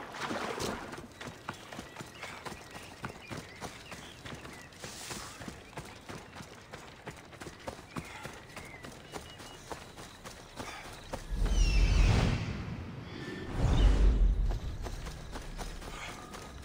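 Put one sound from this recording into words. Footsteps patter on grass and earth.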